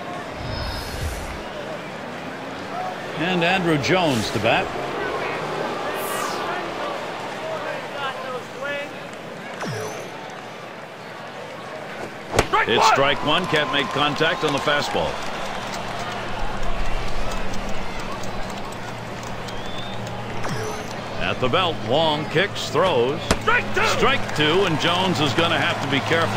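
A crowd murmurs steadily in a large stadium.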